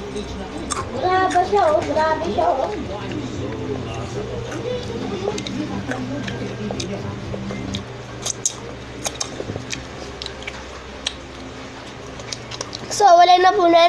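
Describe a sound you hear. A young girl sings close into a microphone.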